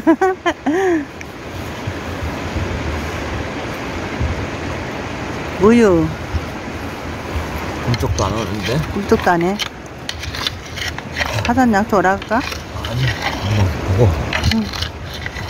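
Shallow water ripples and laps gently over stones.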